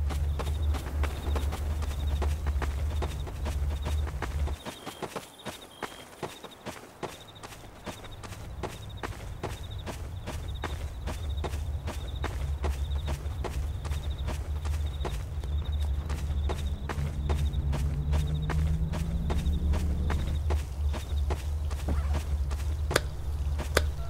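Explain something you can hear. A handheld detector beeps in quick, regular pulses.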